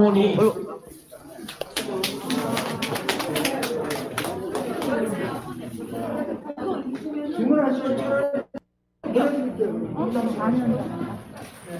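Several people talk nearby in an echoing hallway.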